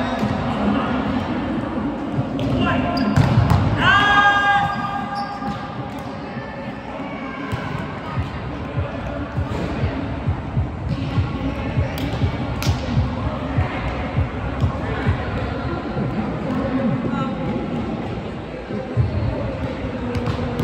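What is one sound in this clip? Young men and women call out to each other across the court.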